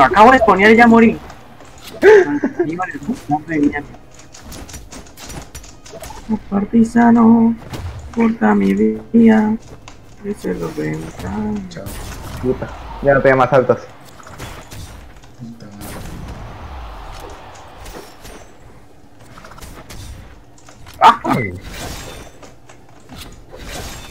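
Weapons swish and clash in a fast fight, with sharp hits and thuds.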